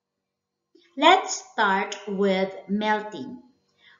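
A woman speaks calmly and clearly into a headset microphone.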